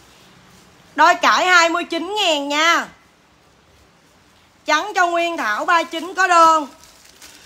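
A young woman speaks close by with animation, in a high, sing-song voice.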